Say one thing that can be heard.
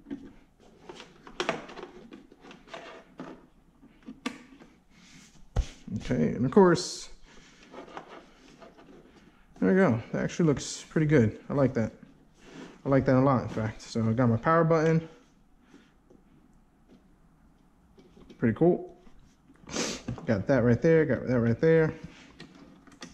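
Small plastic parts click and rattle against a circuit board.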